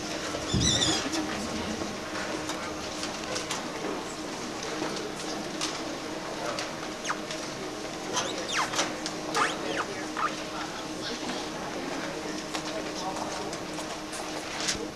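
A crowd of children chatters and calls out in a large echoing hall.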